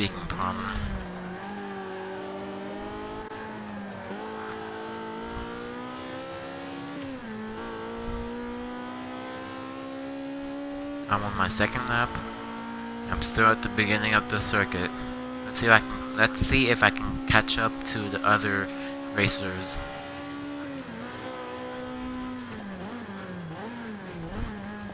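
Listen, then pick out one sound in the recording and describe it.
A racing car engine roars, rising in pitch and dropping between gear changes.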